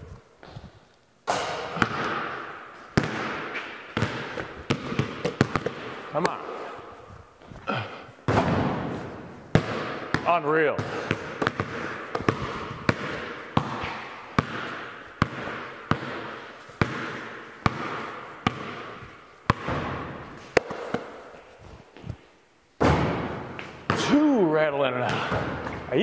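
A basketball clangs off a hoop's backboard and rim.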